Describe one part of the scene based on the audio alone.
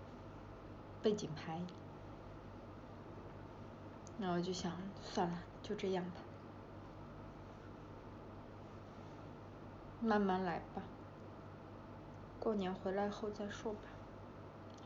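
A young woman speaks softly and close by in short bursts.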